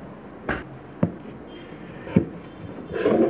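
A plastic tub knocks down onto a table.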